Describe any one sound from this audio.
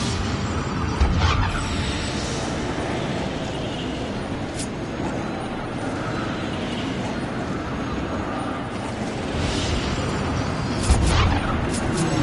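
Magic energy crackles and whooshes as a glowing orb is fired.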